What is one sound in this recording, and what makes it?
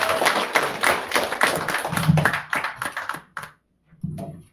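Several people clap their hands in applause.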